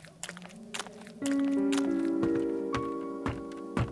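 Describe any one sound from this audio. Footsteps thud on creaking wooden stairs.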